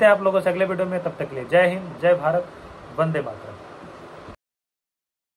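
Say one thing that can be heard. A young man speaks calmly and close to a microphone.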